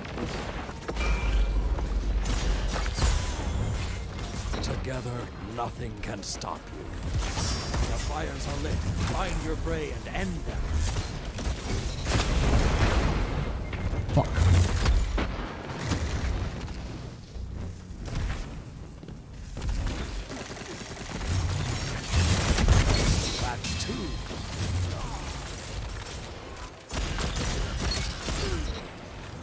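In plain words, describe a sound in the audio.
Gunshots and blasts crack in rapid bursts.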